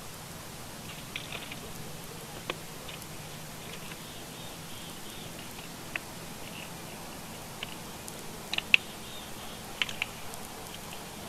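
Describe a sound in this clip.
An eagle calls with sharp, high chirping cries.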